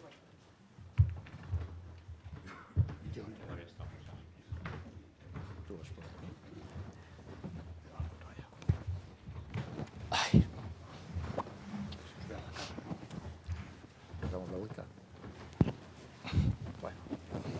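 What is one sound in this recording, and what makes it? Microphones thump and rustle as they are handled.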